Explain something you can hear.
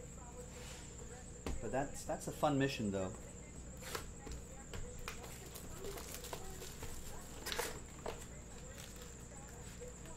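A cardboard box is set down and handled on a table.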